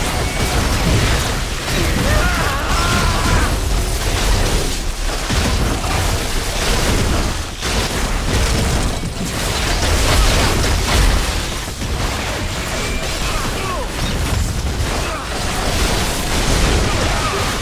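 Icy blasts crackle and shatter in bursts.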